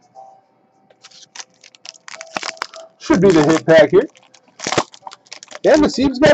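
A foil card pack crinkles and tears open.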